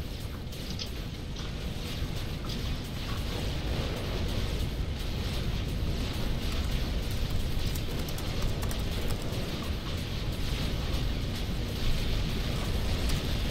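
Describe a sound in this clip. Gunfire crackles in quick, scattered bursts.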